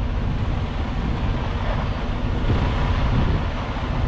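A truck door clicks open.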